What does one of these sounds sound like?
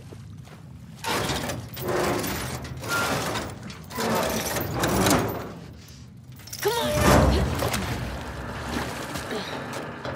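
A metal roller shutter rattles and scrapes as it is heaved open.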